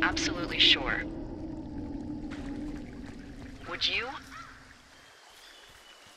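Water flows in a nearby river.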